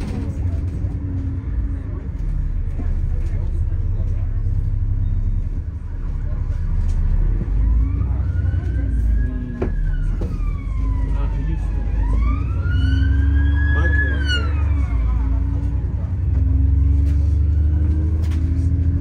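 A bus engine rumbles low and steady from inside the bus.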